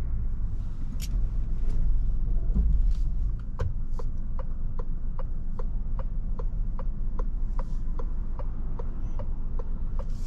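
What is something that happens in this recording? A car engine and tyres rumble low on the road.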